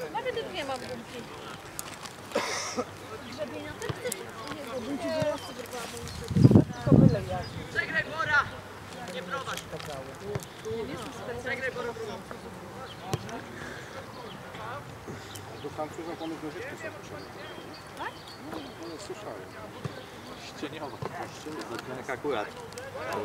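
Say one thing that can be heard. Football players shout and call to each other across an open field.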